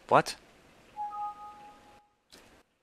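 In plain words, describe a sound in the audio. A computer error chime sounds.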